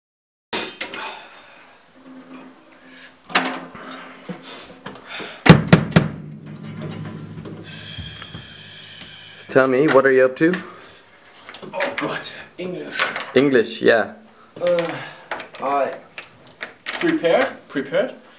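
Metal drum hardware knocks and clanks as a drum kit is handled.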